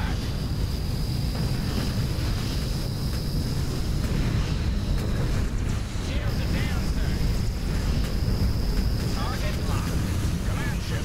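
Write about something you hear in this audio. Laser weapons fire in steady bursts.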